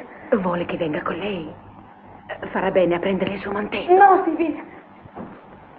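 A woman speaks.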